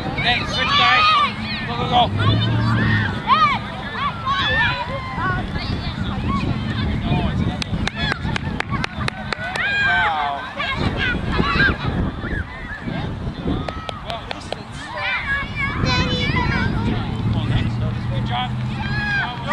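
Adults cheer and call out from the sidelines.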